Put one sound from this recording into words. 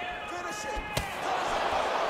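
A kick lands with a sharp thud.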